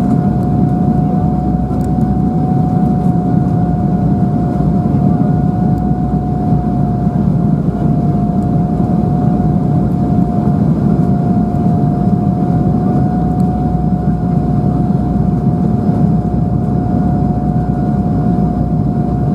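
Jet engines roar steadily with a low rumble, heard from inside an airliner cabin.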